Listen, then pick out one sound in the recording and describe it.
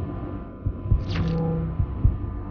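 A short electronic menu chime rings out.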